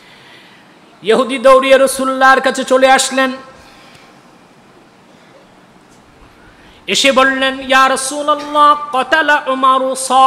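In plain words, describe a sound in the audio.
A man chants loudly in a melodic voice through a microphone.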